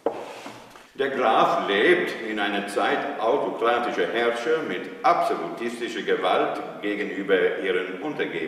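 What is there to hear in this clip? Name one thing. An elderly man recites loudly and expressively in an echoing room.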